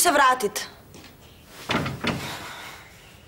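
A young woman speaks close by, with feeling.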